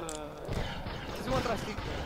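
A laser gun fires with a sharp zap.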